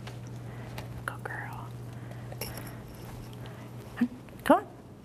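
A woman speaks briefly to a dog.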